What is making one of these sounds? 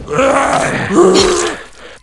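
An axe strikes flesh with a wet thud.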